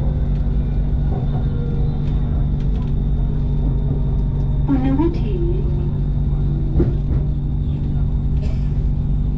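A train hums and rumbles steadily along an elevated track.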